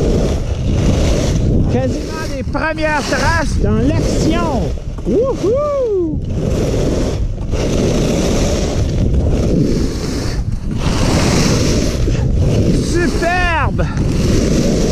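Skis scrape and hiss steadily over hard snow.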